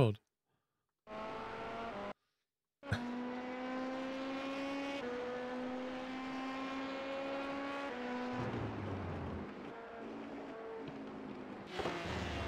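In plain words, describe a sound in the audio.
A race car engine drones and shifts pitch through the gears.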